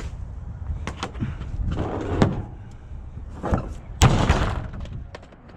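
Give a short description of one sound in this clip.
A plastic dumpster lid bangs shut with a hollow thud.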